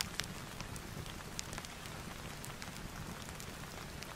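Book pages rustle as they are turned.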